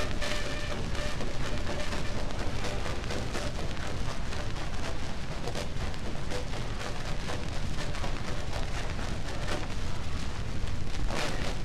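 Scratchy old dance music plays from a gramophone horn.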